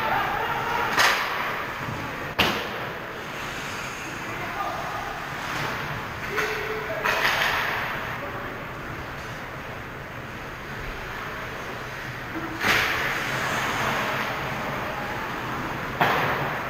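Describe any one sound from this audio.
Hockey sticks and pucks clack sharply against the ice and boards.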